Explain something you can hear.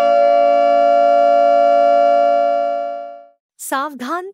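An electric siren blares a steady, harsh tone, then cuts off.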